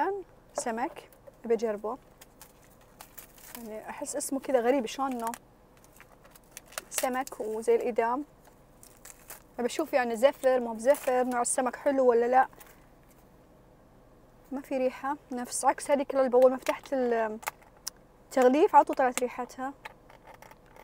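A woman talks calmly and close by, in short bursts.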